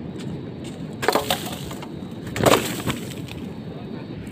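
Plastic bottles clatter down close by.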